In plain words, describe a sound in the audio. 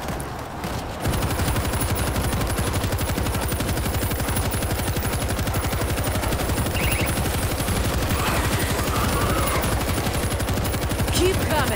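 A heavy machine gun fires long rapid bursts close by.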